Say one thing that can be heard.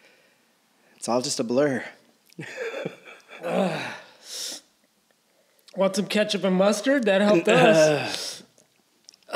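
A man talks and laughs into a close microphone.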